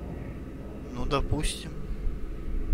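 A man replies in a low voice.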